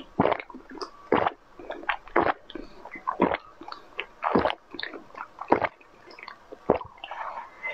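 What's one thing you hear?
A young woman slurps and gulps a drink up close.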